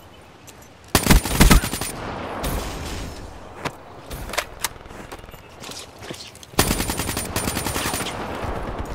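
Rapid bursts of automatic gunfire crack loudly.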